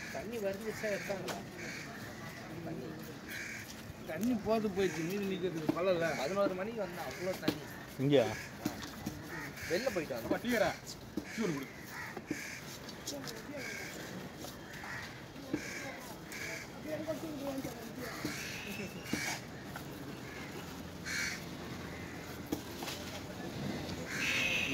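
A knife blade knocks against a wooden chopping block.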